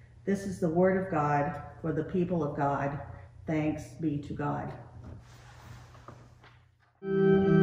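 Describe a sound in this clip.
A middle-aged woman speaks calmly into a microphone in an echoing room.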